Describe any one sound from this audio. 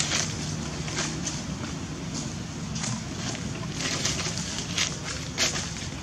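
Dry leaves rustle and crackle as monkeys shift about.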